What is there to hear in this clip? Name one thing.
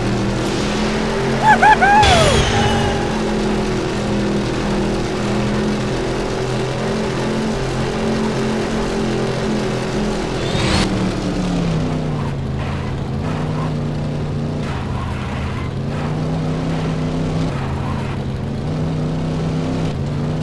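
A car engine drones steadily at high speed, then drops lower as the car slows.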